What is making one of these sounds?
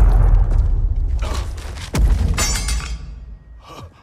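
Heavy blows thud during a fight.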